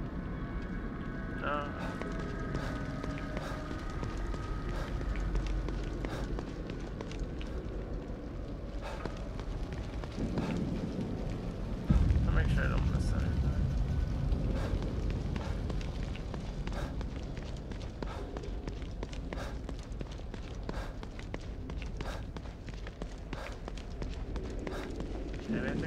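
A young man talks into a close microphone.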